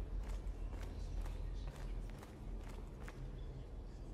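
Footsteps walk slowly on a hard floor in a large echoing hall.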